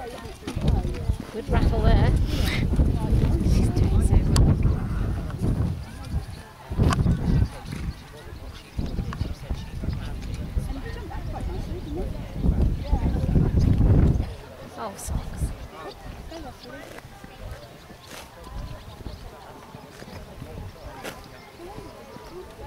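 A horse canters across soft grass with muffled hoofbeats.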